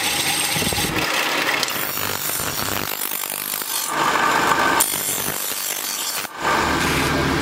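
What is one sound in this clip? A grinding wheel shrieks against steel.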